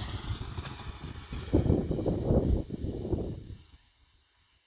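A snow tube slides and scrapes over snow.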